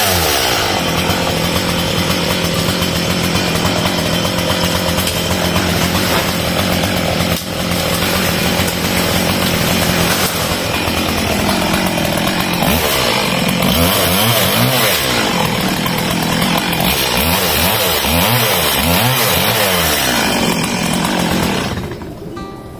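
A chainsaw roars loudly and revs up and down as it cuts through wood.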